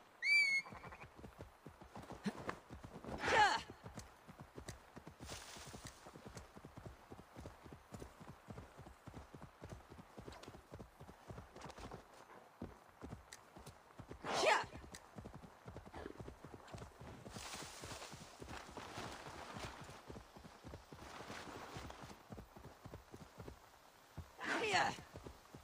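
A horse gallops with rapid, steady hoofbeats on soft ground.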